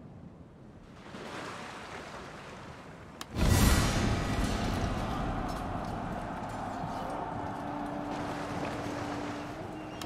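Sea waves wash and roll against a rocky shore.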